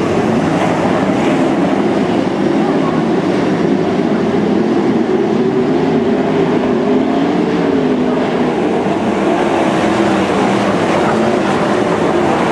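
Racing car engines roar loudly, rising and falling in pitch.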